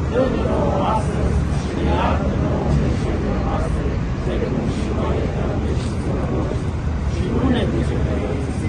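Traffic rumbles steadily.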